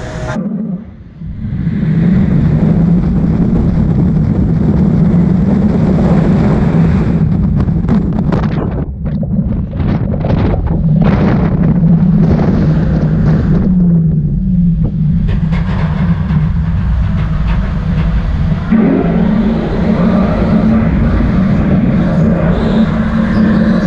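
A roller coaster train rumbles loudly along its track.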